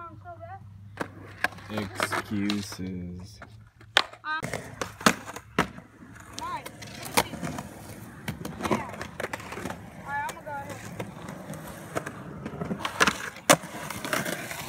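A skateboard clacks and slaps against concrete.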